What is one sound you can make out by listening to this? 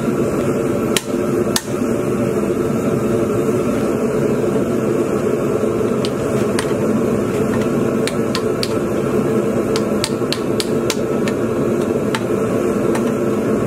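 A gas torch roars steadily close by.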